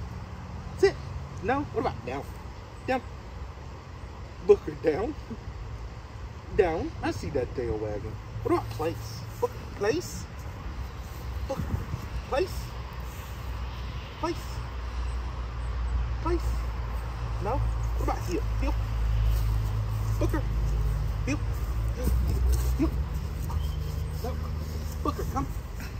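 A man talks calmly, close by, outdoors.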